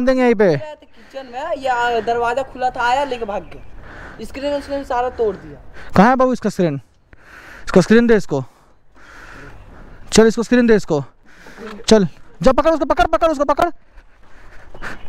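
Young men talk and laugh with animation close by.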